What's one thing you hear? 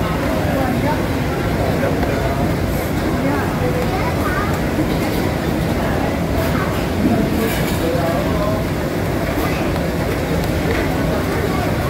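A metal scraper scrapes and taps on a board.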